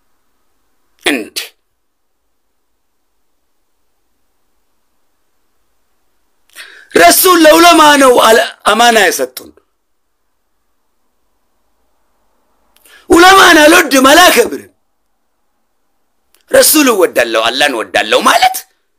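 A man speaks with animation close to a phone microphone, in short bursts with pauses.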